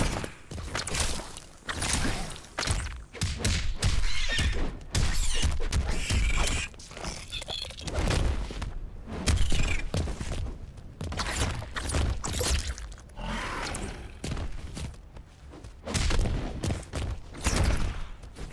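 Heavy punches and kicks land with sharp thuds.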